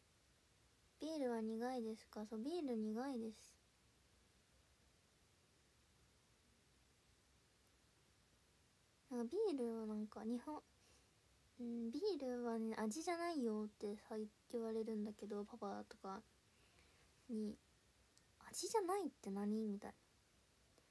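A young woman talks with animation close to a microphone, in short bursts with pauses.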